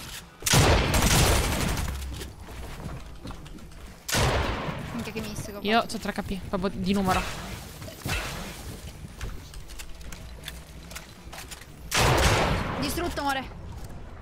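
A pickaxe strikes and breaks building pieces in a game.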